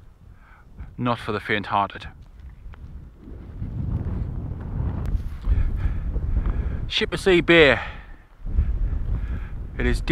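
A man speaks calmly close by, outdoors.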